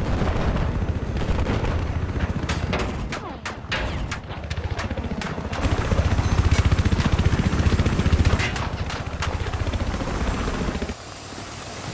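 A helicopter rotor thumps loudly and steadily.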